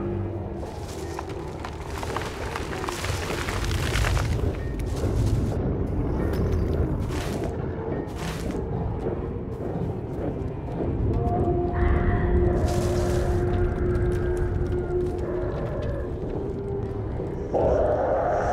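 Footsteps crunch over gravel and dirt.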